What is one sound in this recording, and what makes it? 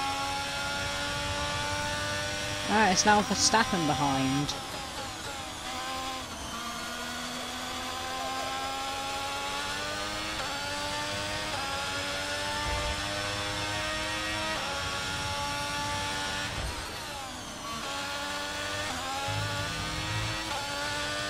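A racing car engine whines at high revs, rising and dropping in pitch as the gears change.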